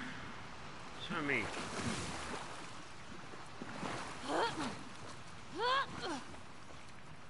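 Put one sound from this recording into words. A young woman grunts with effort.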